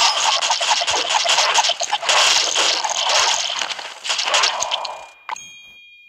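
Game battle effects crash and explode rapidly.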